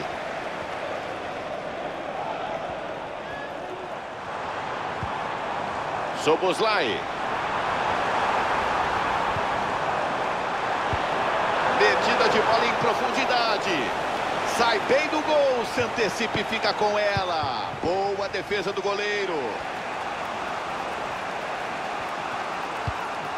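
A stadium crowd roars and chants.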